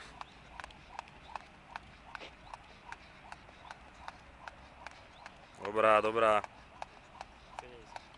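A jump rope slaps the ground in a quick, steady rhythm.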